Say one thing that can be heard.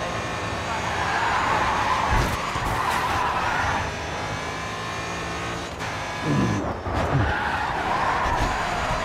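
Tyres screech through a corner.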